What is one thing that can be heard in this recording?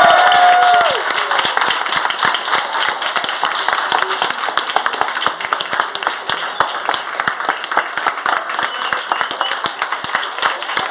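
A crowd of children and adults claps quickly in rhythm.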